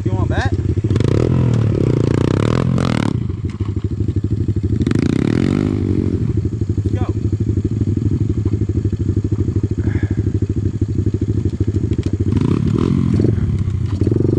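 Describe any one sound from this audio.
Another dirt bike engine revs as the bike rides closer.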